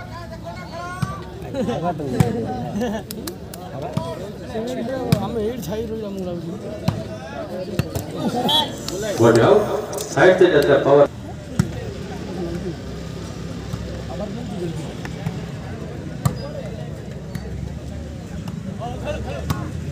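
A ball is kicked with sharp thuds.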